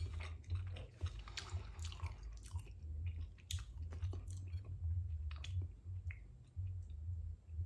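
A man chews food loudly and smacks his lips close up.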